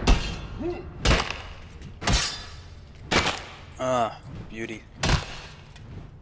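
Blades clash and strike in a short fight.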